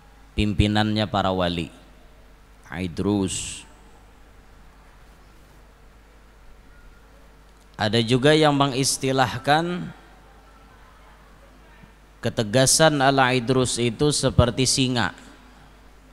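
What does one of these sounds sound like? A young man chants melodiously into a microphone, in phrases with pauses between them.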